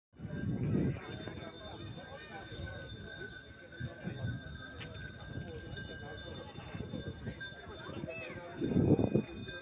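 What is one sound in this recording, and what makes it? A crowd murmurs outdoors in the open air.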